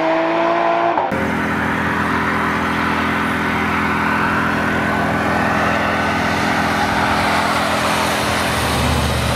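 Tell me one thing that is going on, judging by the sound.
A car engine roars steadily as the car drives past.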